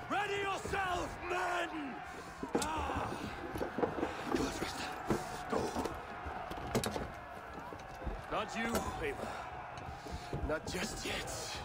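A man speaks in a firm, low voice up close.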